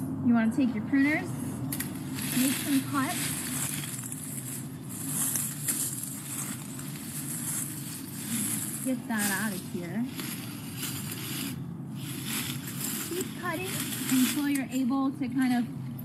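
A young woman talks calmly outdoors.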